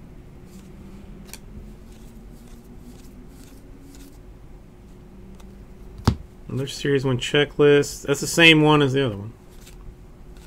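Trading cards flick and slide against each other in a hand.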